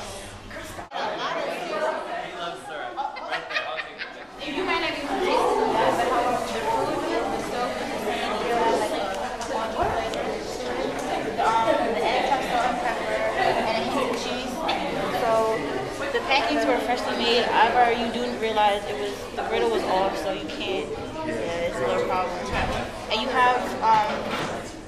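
A crowd of people chatter.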